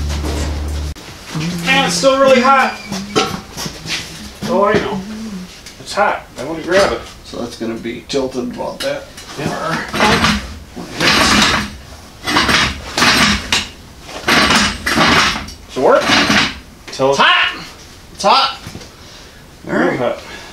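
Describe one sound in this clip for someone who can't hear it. A man talks nearby with animation.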